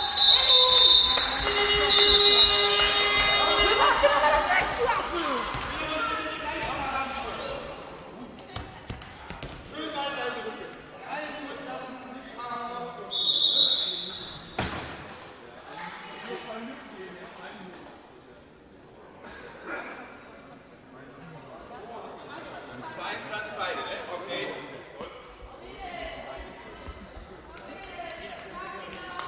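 A ball bounces repeatedly.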